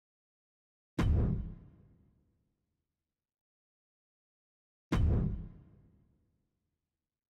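Heavier booming menu sounds ring out and fade.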